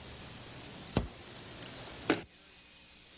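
Computer keys click a couple of times.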